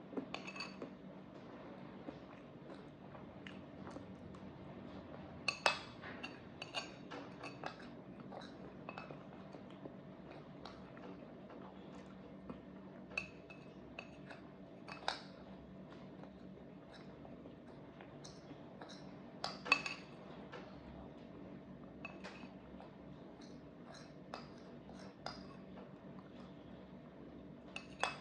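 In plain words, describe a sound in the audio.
A spoon clinks and scrapes against a plate.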